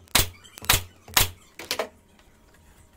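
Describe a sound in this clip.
A nail gun fires nails into wood with sharp bangs.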